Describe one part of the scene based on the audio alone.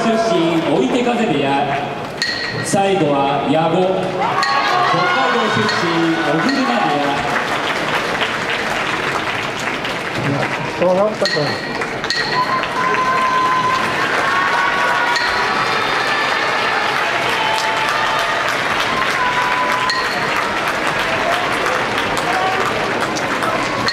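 A large crowd murmurs and claps in an echoing hall.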